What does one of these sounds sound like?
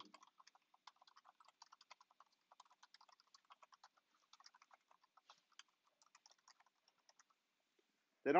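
Keys on a computer keyboard click rapidly as someone types.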